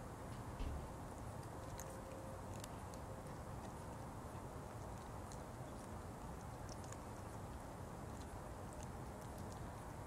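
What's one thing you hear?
A cat laps and chews food from a bowl close by.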